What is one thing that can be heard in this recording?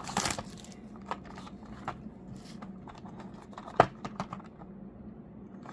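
A cardboard box rustles and taps in hands.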